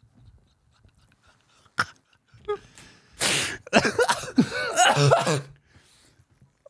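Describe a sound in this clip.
A man laughs heartily close to a microphone.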